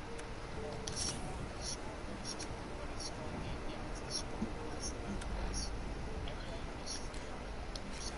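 Soft game menu clicks tick as items are scrolled through.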